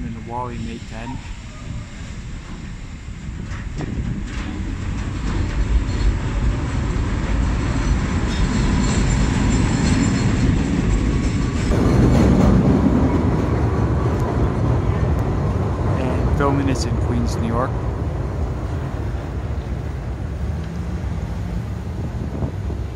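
Wind blows and rumbles against the microphone outdoors.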